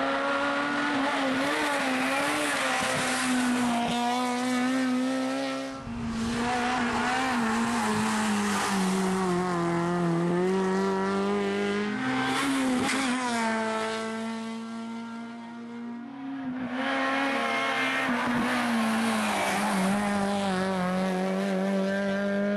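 A rally car engine roars loudly, revving up and down as the car speeds past.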